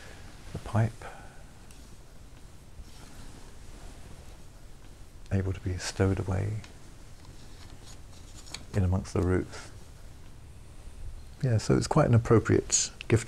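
An older man speaks calmly and close by, in short phrases with pauses.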